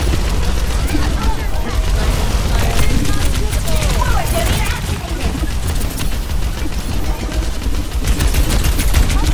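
Blasts and impacts crackle amid the shooting.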